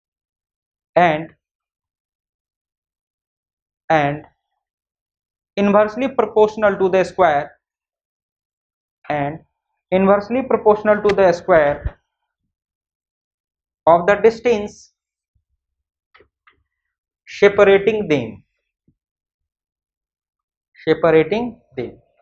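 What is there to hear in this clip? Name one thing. A man lectures calmly in short bursts, close by.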